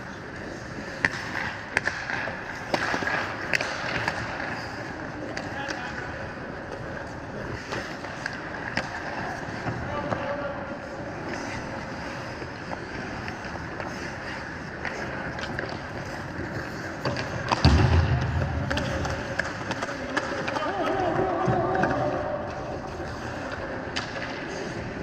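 Hockey sticks clack sharply against the puck and ice.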